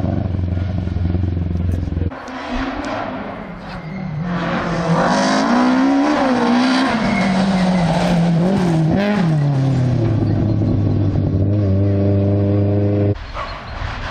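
A rally car engine roars at high revs as it speeds past on gravel.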